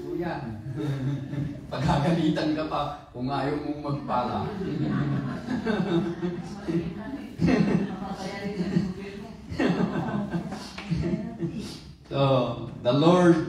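A man preaches with animation through a microphone and loudspeakers in an echoing hall.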